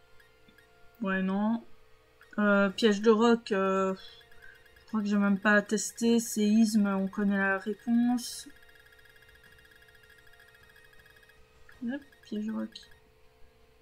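A young woman speaks calmly and closely into a microphone.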